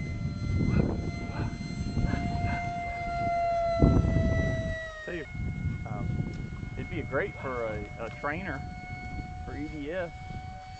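An aircraft engine whines steadily overhead, its pitch shifting.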